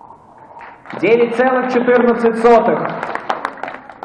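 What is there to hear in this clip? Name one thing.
A man announces through a microphone and loudspeakers.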